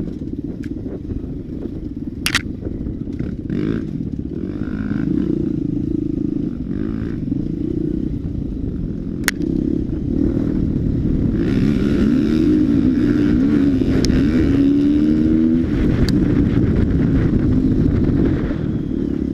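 Tyres rumble over a bumpy dirt trail.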